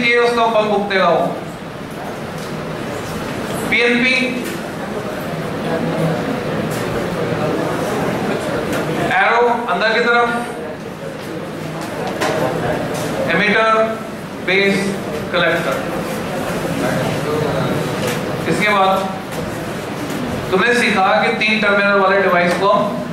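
A man speaks to a class.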